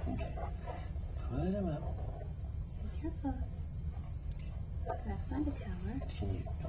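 A woman speaks gently and close by.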